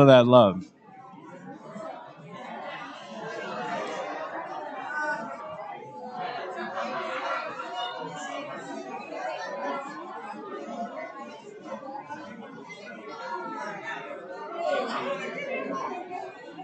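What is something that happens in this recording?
Many people chatter together in a large room.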